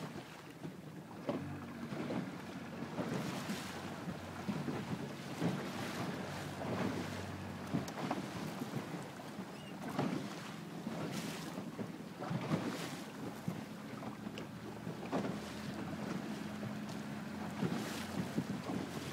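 Wind blows steadily past outdoors on open water.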